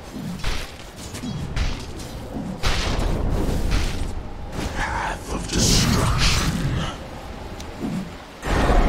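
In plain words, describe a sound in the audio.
Magic spells burst and crackle in a battle.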